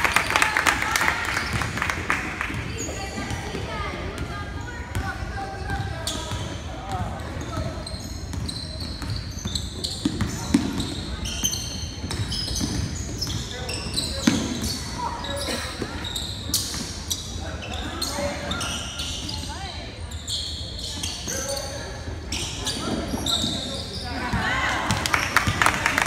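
Spectators cheer and call out from the stands.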